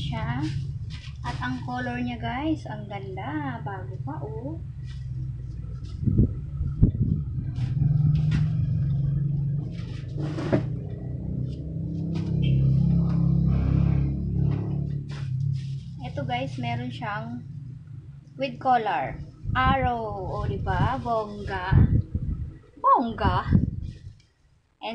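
Clothes rustle as they are handled.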